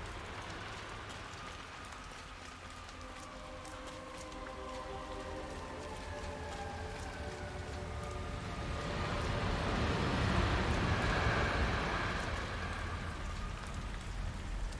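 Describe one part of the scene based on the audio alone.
Footsteps tread on wooden steps and a walkway.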